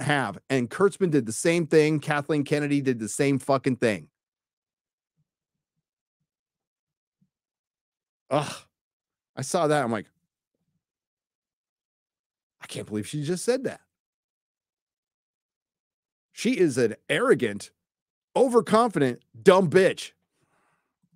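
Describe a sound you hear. A middle-aged man talks with animation into a close microphone, with long pauses.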